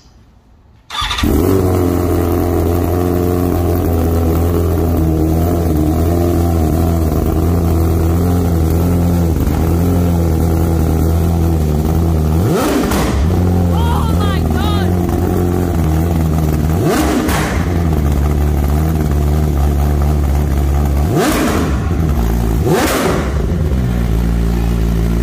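An inline-four superbike with a full race exhaust idles with a deep, loud burble.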